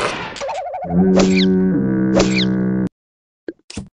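A wet splat hits with a cartoon smack.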